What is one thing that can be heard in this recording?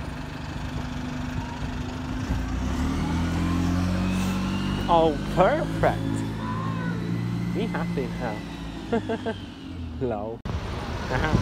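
A bus engine rumbles and whines nearby as the bus pulls away.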